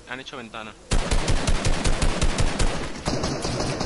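Rapid gunshots fire in a game.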